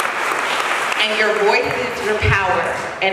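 A young woman speaks into a microphone, heard over loudspeakers in a large room.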